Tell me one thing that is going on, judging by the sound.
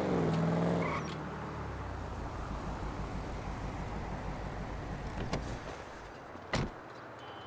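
A car engine idles low.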